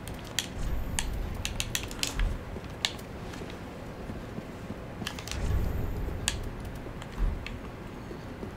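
Sharp menu clicks tick several times.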